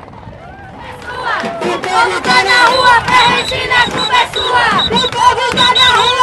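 A woman shouts loudly close by.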